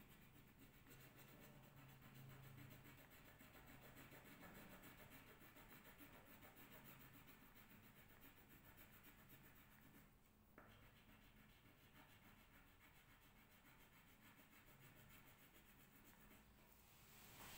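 A marker scratches rapidly across paper.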